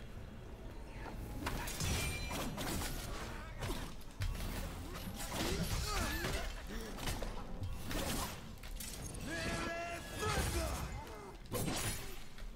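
Blades swing and clash in a game fight.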